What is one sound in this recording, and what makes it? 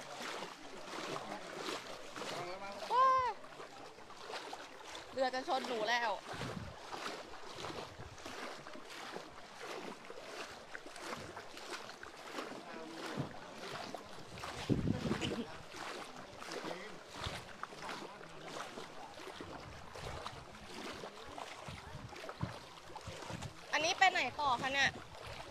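Feet wade and splash through deep water.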